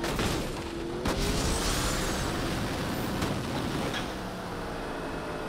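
A rushing whoosh surges as a car boosts.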